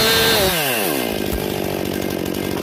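A chainsaw idles after the cut.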